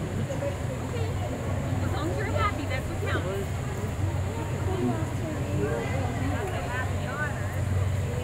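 An otter squeaks in short high chirps.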